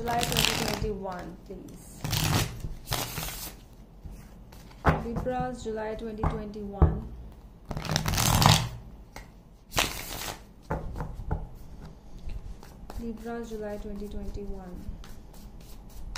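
A deck of cards riffles and shuffles with quick crisp rustles.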